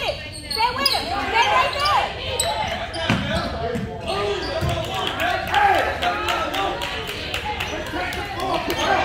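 Young players shout and call out to each other in an echoing gym.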